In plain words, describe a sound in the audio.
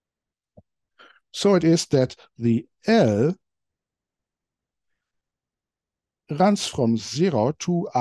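A man lectures calmly into a close microphone.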